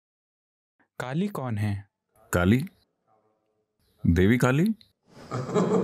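An elderly man speaks calmly into a microphone in short phrases.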